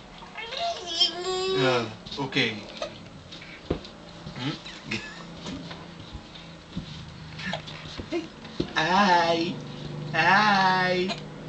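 A man speaks close by in a playful, sing-song voice.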